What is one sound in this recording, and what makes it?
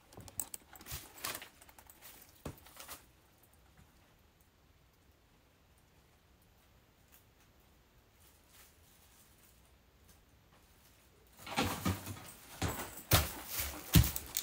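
Footsteps thump on a floor nearby.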